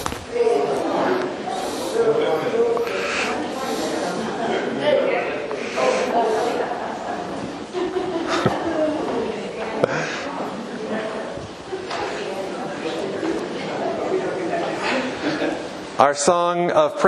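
A man speaks in a reverberant hall.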